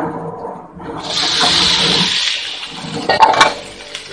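Chopped potatoes drop into hot oil with a loud burst of sizzling.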